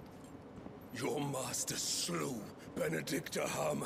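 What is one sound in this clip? A man shouts angrily in a large echoing hall.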